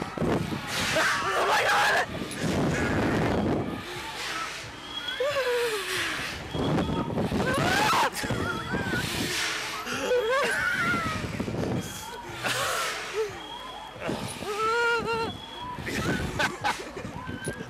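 A young woman screams close by.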